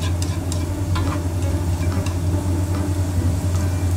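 Noodles sizzle in a frying pan.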